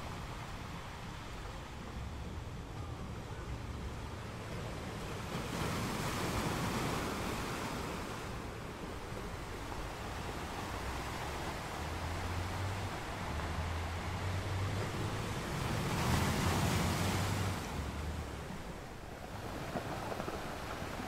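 Waves break and crash onto rocks, surging in loud swells.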